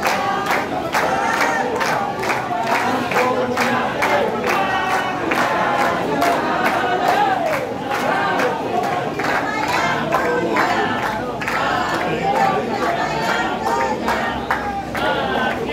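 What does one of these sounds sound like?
A large crowd of men chants and sings loudly outdoors.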